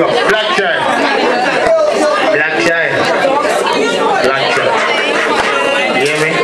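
A crowd of men talk and shout loudly over one another, close by.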